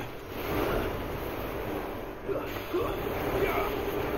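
A jet of fire roars.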